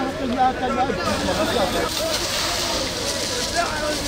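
A fire hose sprays water with a steady hiss.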